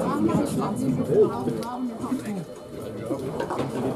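A bowling ball rumbles down a lane.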